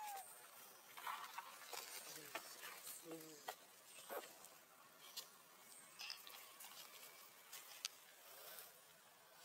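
Leaves and grass rustle as a monkey tugs at them.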